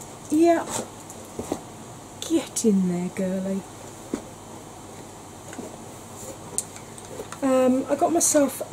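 A young woman talks casually, close to a microphone.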